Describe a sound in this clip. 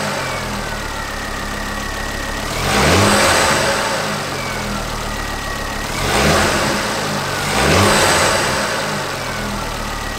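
A car engine idles and revs up sharply three times.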